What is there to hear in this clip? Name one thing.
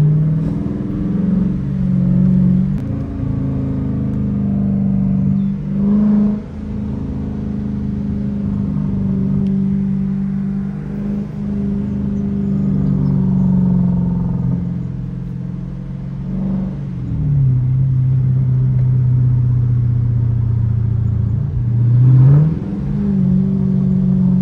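A car engine rumbles deeply inside the cabin, rising and falling as the car speeds up and slows down.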